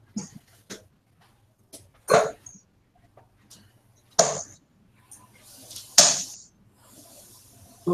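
Darts thud into a bristle dartboard.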